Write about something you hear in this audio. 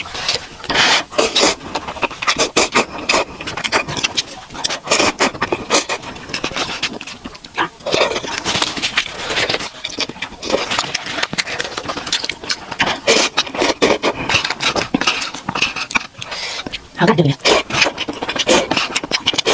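A young woman slurps noodles loudly and close to a microphone.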